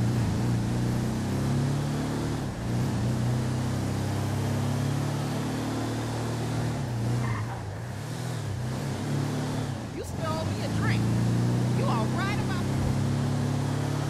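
A car engine hums steadily, rising and falling as the car speeds up and slows down.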